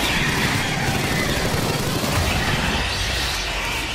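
A monster shrieks.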